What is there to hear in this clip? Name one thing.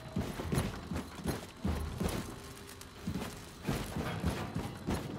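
Heavy footsteps thud on a hard floor at a steady pace.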